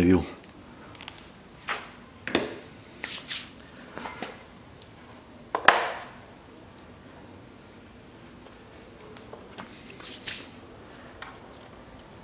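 Plastic parts click and knock as they are handled.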